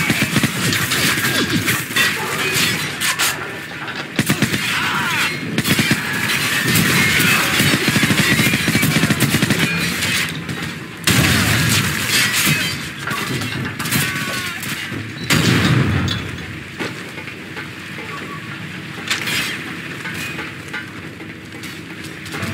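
Footsteps clank on metal grating.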